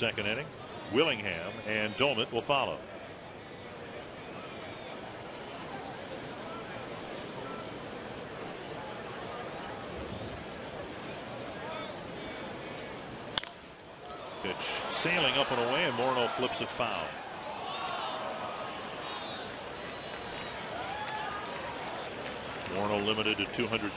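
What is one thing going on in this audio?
A large outdoor crowd murmurs.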